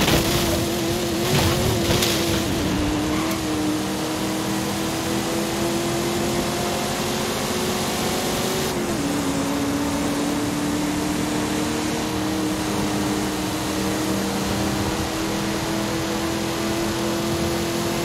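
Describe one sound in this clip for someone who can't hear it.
Tyres roll over a paved road with a steady rushing hiss.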